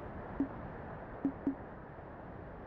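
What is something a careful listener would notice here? Short electronic menu blips chime.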